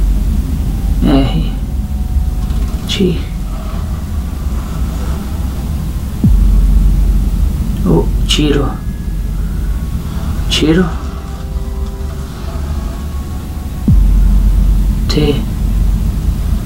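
A young man speaks quietly and slowly nearby.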